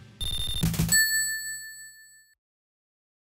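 A video game chime rings as a score is tallied.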